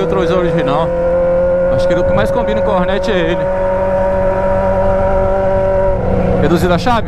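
An inline-four sport motorcycle with a straight-piped exhaust cruises at steady revs.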